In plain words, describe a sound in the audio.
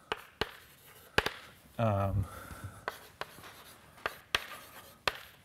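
Chalk taps and clicks sharply on a blackboard.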